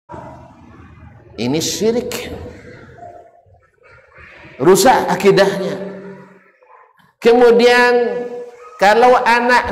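A middle-aged man speaks with animation into a microphone, in a slightly echoing room.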